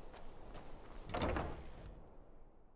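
A heavy wooden door opens.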